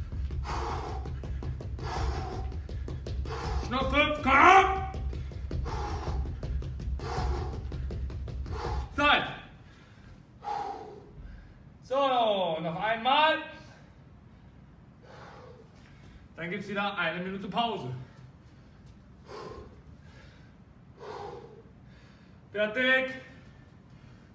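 Feet thump rhythmically on a padded floor.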